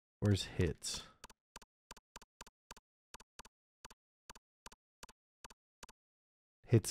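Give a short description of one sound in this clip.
Short electronic menu clicks tick at a steady pace.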